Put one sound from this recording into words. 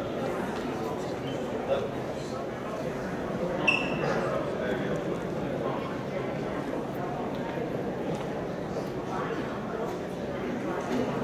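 A crowd of people murmurs and talks quietly in a large echoing hall.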